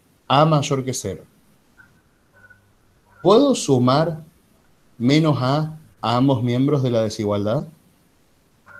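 A man speaks calmly through a microphone, as in an online call.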